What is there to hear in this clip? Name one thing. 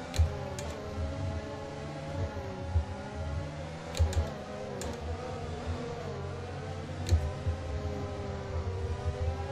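A racing car engine hums and whines steadily, with the pitch shifting as it changes speed.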